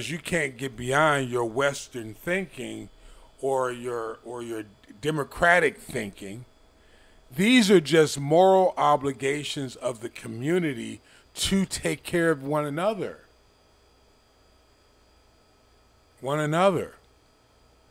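A man speaks with animation close to a microphone, pausing between phrases.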